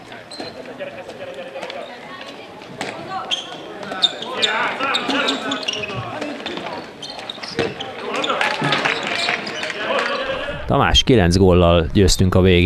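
A handball bounces on a wooden floor in an echoing hall.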